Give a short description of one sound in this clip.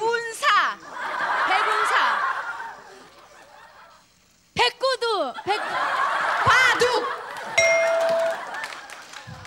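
A studio audience laughs and cheers.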